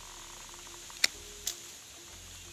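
Pruning shears snip twigs with sharp clicks.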